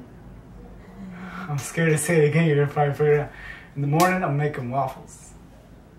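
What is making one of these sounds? A young man laughs loudly close by.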